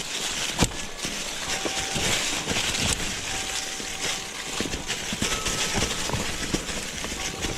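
Bicycle tyres crunch and rustle over dry leaves on a dirt trail.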